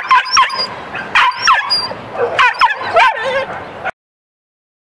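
A small dog growls and snarls.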